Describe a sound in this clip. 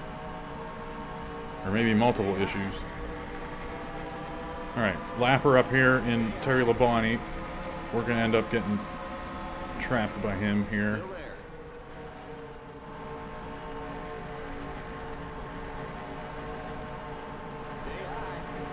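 Race car engines roar steadily at high speed.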